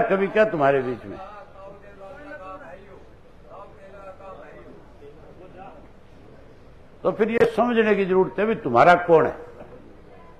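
A man speaks loudly and with animation.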